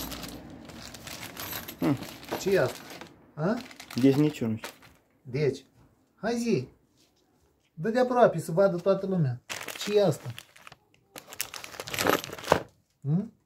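A plastic bag crinkles and rustles in a man's hands.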